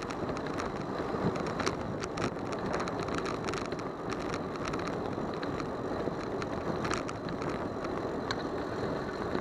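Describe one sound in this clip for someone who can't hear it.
A bicycle rattles over bumps in the pavement.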